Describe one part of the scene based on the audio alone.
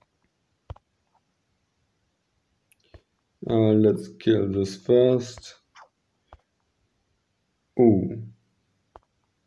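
A game menu gives short clicks as options are tapped.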